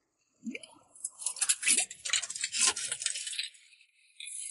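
A metal rod scrapes against rock.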